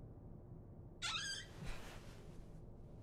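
Wooden cupboard doors creak as they swing open.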